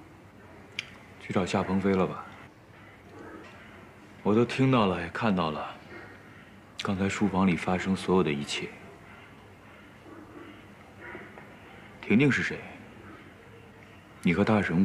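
A young man speaks calmly and coolly, close by.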